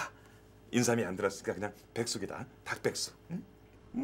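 A man talks and chuckles close by.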